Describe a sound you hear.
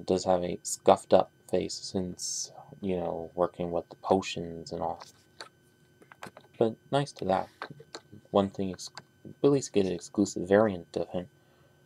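Fingers handle and turn a small plastic toy figure.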